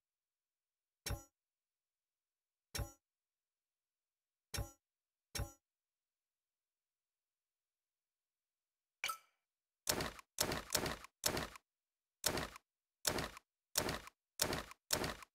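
Short menu clicks sound one after another.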